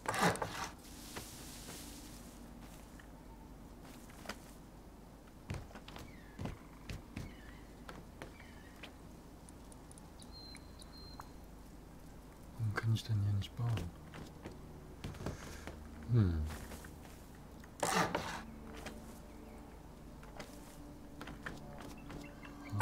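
Wooden building pieces knock into place.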